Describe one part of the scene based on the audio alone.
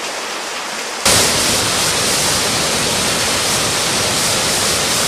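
A waterfall rushes and splashes loudly.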